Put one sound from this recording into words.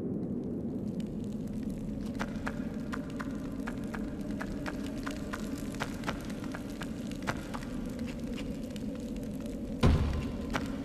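Footsteps tap lightly on a hard stone floor.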